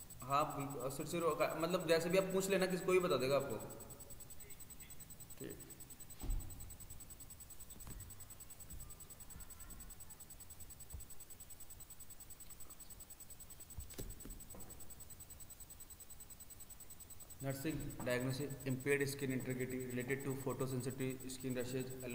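A man speaks calmly close by, with pauses.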